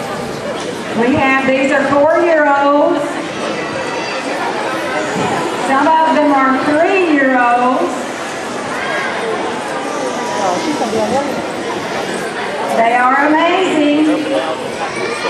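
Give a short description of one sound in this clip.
An elderly woman speaks through a microphone over loudspeakers in an echoing hall.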